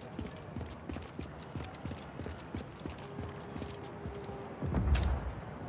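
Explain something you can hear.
Footsteps run quickly on a hard surface.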